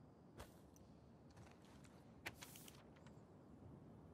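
Paper rustles as a note is picked up and unfolded.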